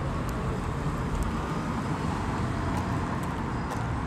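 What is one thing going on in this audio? A car drives past on a street.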